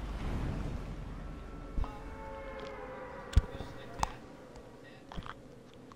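Wind rushes past steadily during a glide through the air.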